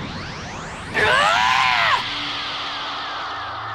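A young boy screams loudly.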